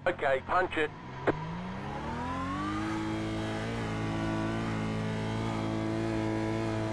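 A racing car engine revs up and climbs in pitch as the car accelerates.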